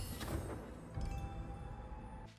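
A bright, shimmering chime rings out and lingers.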